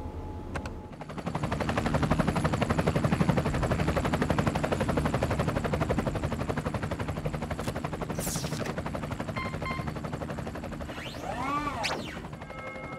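A helicopter's rotor thumps and whines loudly.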